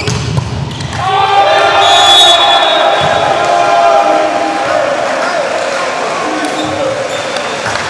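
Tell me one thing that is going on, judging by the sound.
A crowd in a large echoing hall cheers loudly and then settles.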